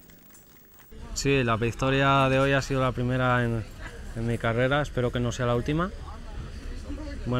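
A young man speaks calmly into a microphone, close by.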